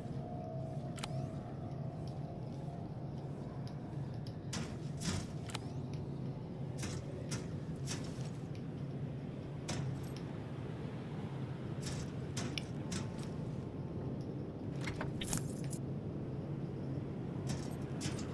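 Footsteps clatter on a hard metal floor.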